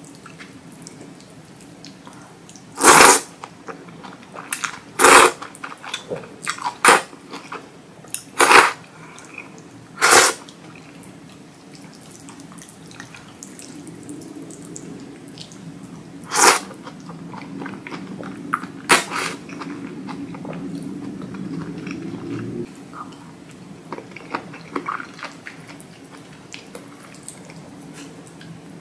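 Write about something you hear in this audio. Chopsticks clack against a bowl.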